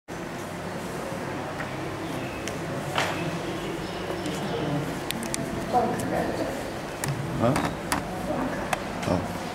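Paper rustles in an elderly woman's hands.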